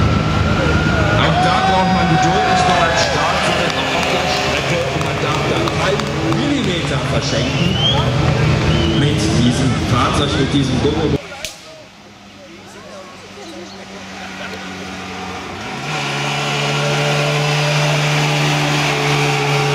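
A small car engine buzzes and revs as it drives past.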